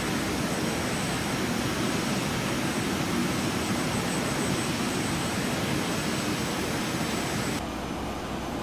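A jet airliner's engines roar steadily as it flies.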